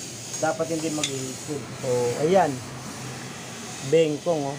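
A metal ring clinks lightly as it is lifted off a wheel hub.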